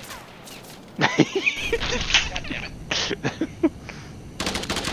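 A rifle fires a quick series of sharp shots.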